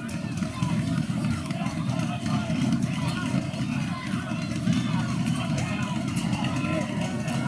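Young men call out to each other from a distance outdoors.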